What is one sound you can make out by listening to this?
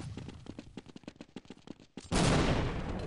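Quick footsteps run over stone.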